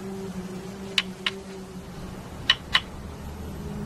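Two hard pieces of bone knock against each other.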